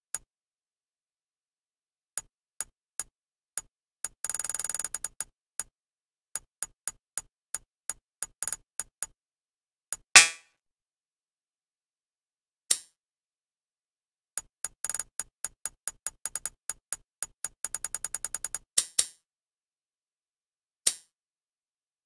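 Game menu cursor clicks tick quickly, again and again.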